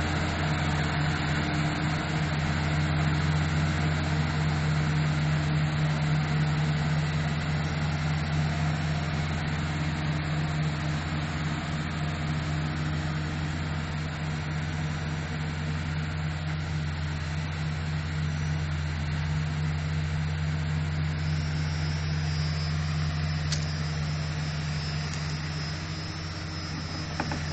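A diesel engine of a bulldozer rumbles steadily nearby, slowly drawing away.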